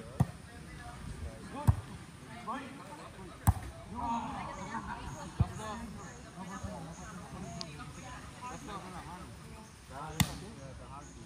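A volleyball thumps sharply as players hit it.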